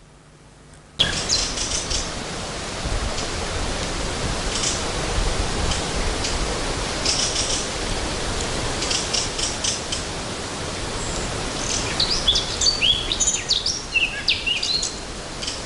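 Wind rustles through the trees outdoors.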